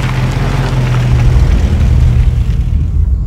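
A car engine drones from inside the car.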